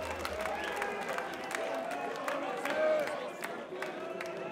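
A crowd claps briefly.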